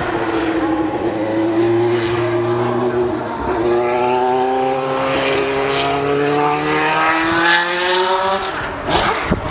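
A racing car engine screams past, rising in pitch through its gear changes.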